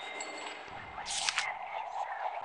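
A paper page flips over with a quick swish.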